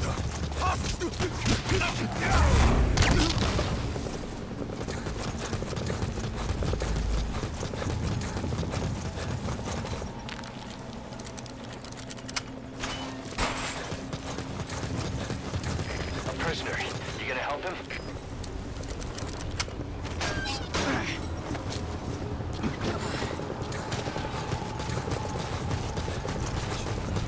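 Footsteps run quickly over grass and gravel.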